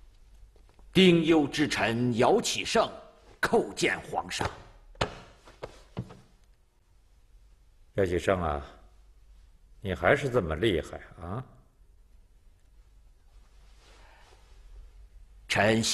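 An elderly man speaks up loudly and respectfully.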